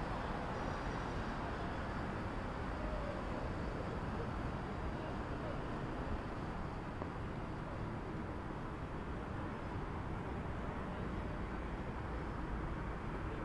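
Traffic rumbles steadily on a city street below.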